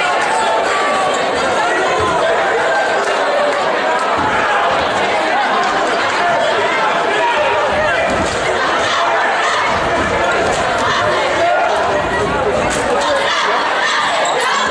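A crowd cheers and chatters throughout in a large echoing gym.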